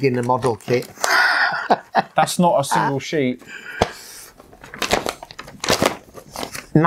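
Paper and plastic wrappers rustle and crinkle.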